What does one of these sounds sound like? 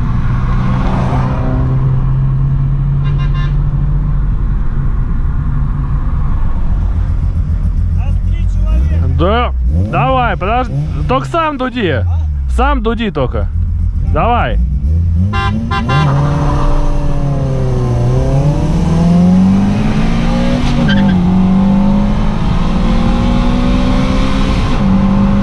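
A car engine hums steadily from inside the car, rising and falling in pitch as it speeds up.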